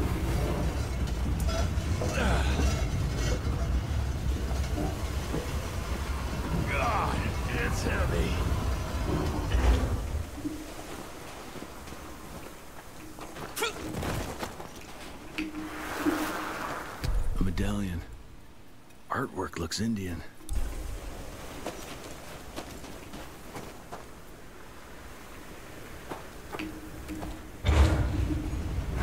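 A man talks calmly into a microphone close by.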